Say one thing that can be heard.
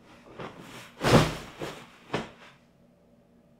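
A person flops down heavily onto a soft bed with a loud thump and rustle of bedding.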